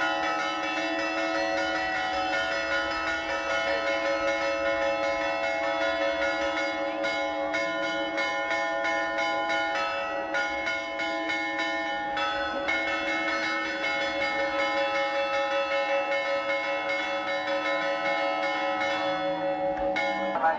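Church bells ring out steadily overhead.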